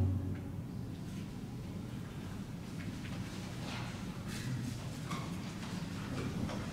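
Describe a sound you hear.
A lute is plucked.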